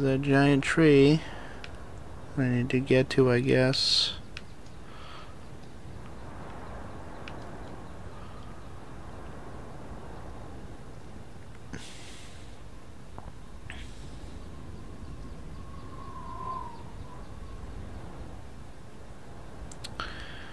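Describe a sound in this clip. Wind blows steadily across open grassland.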